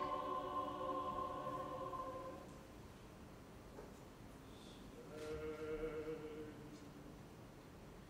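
A man sings long, held notes in a strong voice.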